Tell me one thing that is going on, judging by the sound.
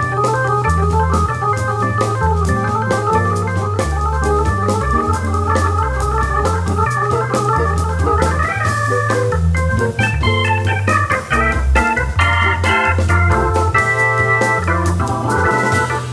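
Music with a deep, pulsing bass and a bright, busy melody plays steadily.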